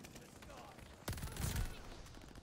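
A gun fires rapid bursts in a video game.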